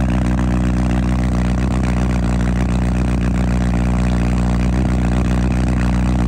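A motorcycle engine idles with a deep, steady rumble close by.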